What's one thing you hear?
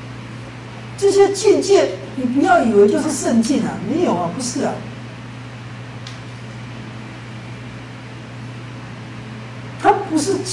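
A middle-aged man speaks calmly into a nearby microphone, with pauses.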